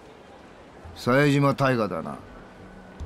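A man speaks firmly and close.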